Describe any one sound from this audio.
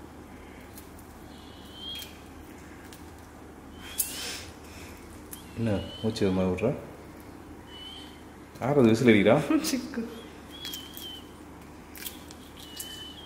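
Eggshell crackles softly as fingers peel a boiled egg.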